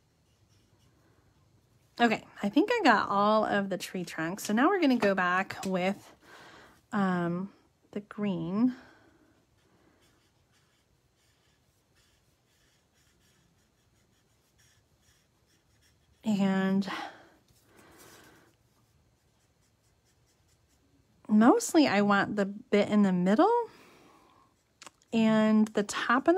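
A marker pen scratches softly on paper.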